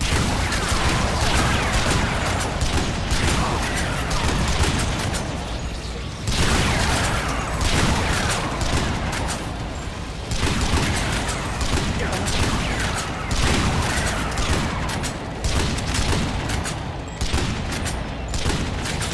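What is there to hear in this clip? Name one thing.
Rapid gunfire crackles continuously.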